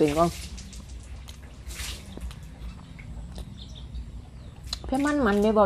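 A woman chews food with soft wet smacking sounds.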